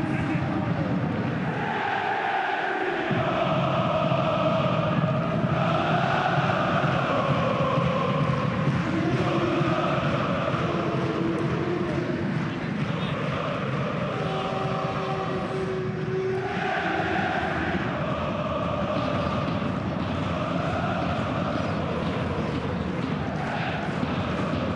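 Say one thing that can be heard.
A large stadium crowd chants and sings loudly and steadily.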